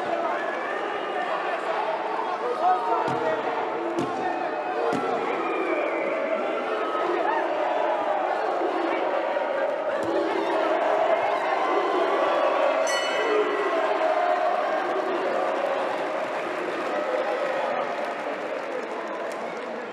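A large crowd cheers and chatters loudly in an echoing arena.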